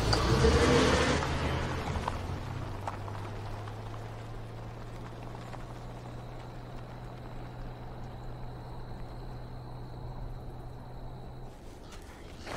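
A car engine rumbles and fades as the car drives away on a dirt road.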